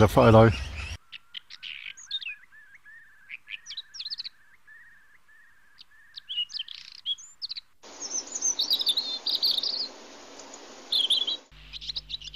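A bird calls with harsh, repeated notes.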